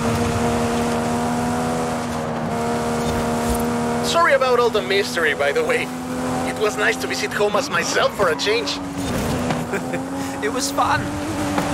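A powerful car engine roars at high speed.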